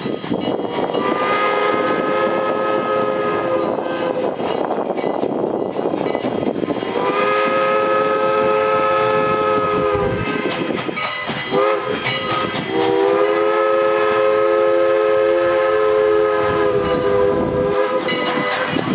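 A steam locomotive whistle blows several long blasts nearby.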